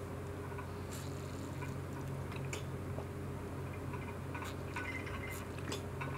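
A young woman gulps a drink from a bottle.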